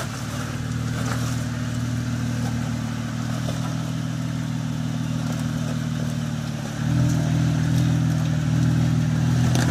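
Tyres crunch and scrape over rock.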